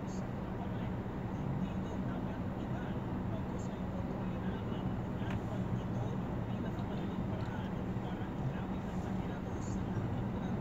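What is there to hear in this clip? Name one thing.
Traffic hums along a busy street outdoors.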